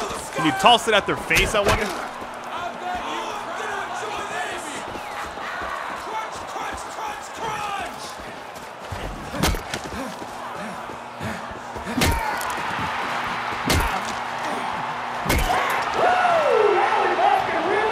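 A man shouts and grunts up close.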